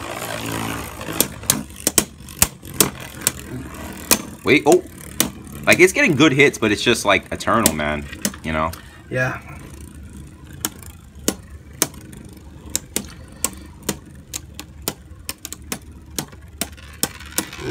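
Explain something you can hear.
Spinning tops clash and click against each other.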